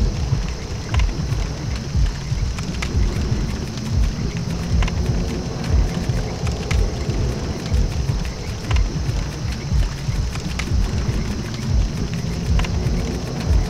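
A menu cursor clicks softly as each item is selected.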